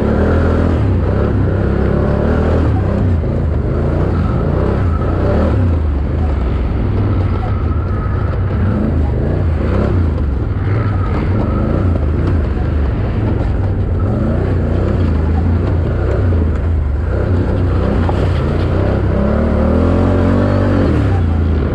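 Knobby tyres churn through loose dirt and leaves.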